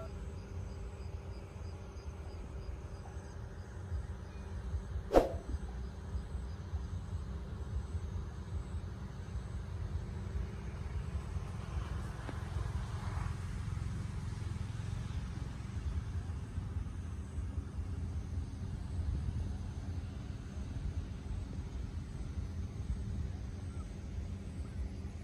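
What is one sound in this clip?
Wind blows steadily outdoors with a low rumble.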